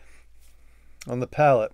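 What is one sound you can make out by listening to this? A middle-aged man speaks close up with animation.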